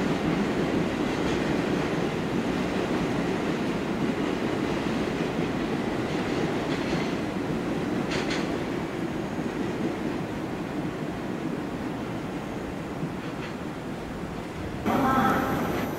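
A freight train rumbles slowly over the tracks.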